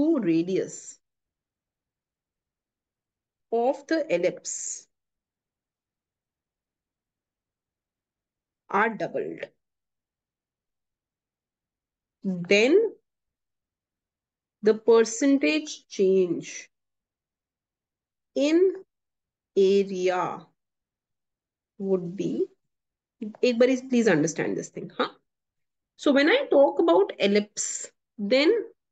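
A young woman speaks calmly into a microphone, with pauses between phrases.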